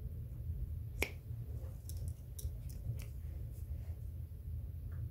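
Hole punch pliers click and snap shut.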